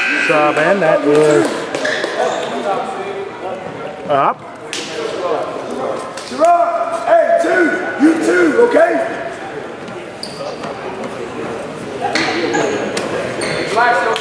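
A crowd of spectators chatters and calls out in an echoing gym.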